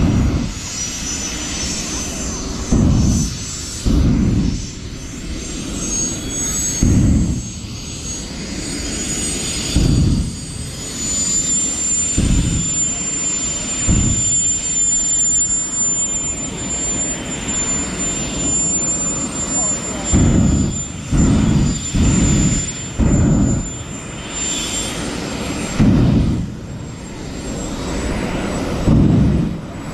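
Tyres screech as a car spins in place.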